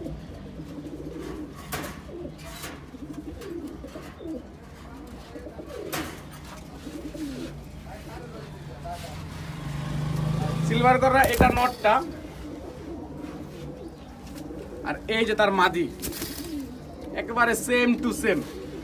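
Pigeons coo softly and repeatedly close by.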